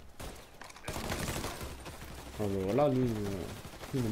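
A rifle fires several shots outdoors.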